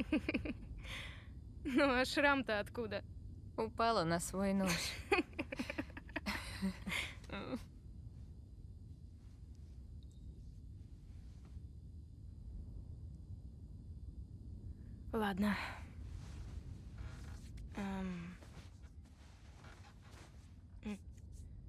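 A young woman speaks softly.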